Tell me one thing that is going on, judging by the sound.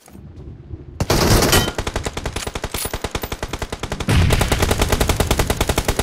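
A gun fires in a rapid, loud rattle.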